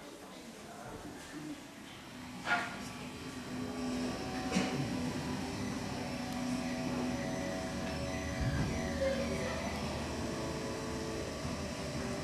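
A seated crowd of men and women murmurs and chats in a large echoing hall.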